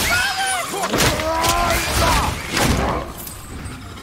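A loud blast bursts with a crackling spray of sparks.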